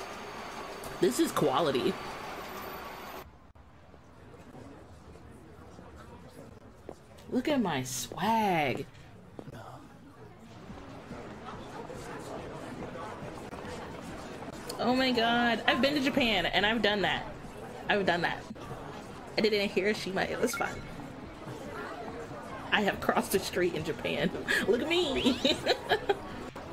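A woman speaks and exclaims with emotion, close to a microphone.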